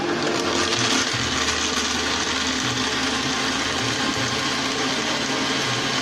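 A blender whirs loudly and steadily.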